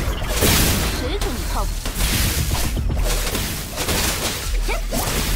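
Game weapon slashes hit enemies with sharp impacts.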